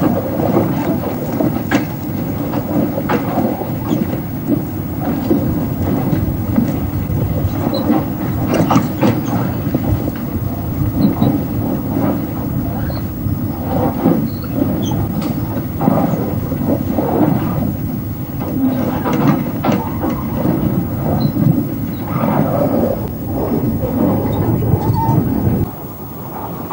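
Metal parts clank and rattle on the track machine.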